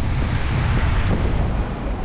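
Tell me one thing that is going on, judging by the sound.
A van drives past close by.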